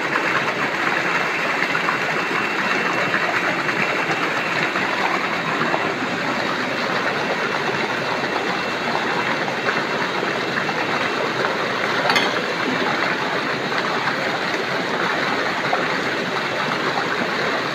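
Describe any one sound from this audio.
Water gushes from a hose.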